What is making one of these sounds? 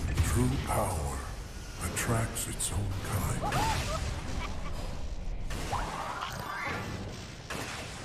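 Weapons clash and strike repeatedly in combat.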